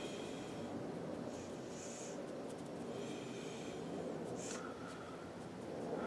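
A stiff brush dabs and scrubs softly on paper.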